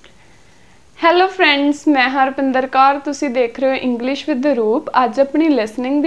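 A young woman speaks clearly and with animation, close to a microphone.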